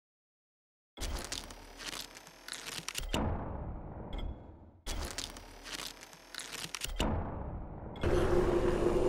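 Short clicks and chimes sound as game menu items are picked.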